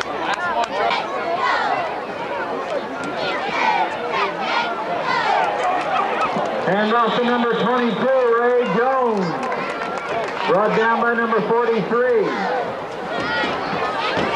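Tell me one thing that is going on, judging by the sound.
A crowd cheers and shouts loudly from stands outdoors.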